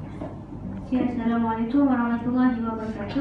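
A second young woman speaks into a microphone over a loudspeaker.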